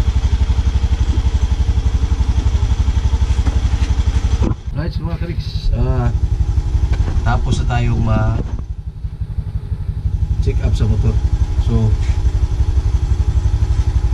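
A scooter engine idles with a steady, rapid putter close by.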